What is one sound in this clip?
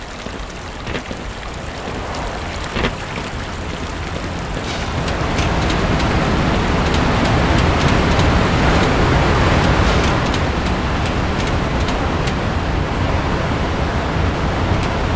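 Water splashes steadily nearby.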